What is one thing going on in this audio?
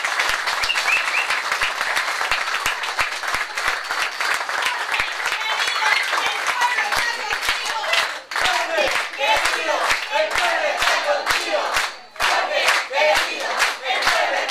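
A crowd of men and women chants and cheers loudly in a room.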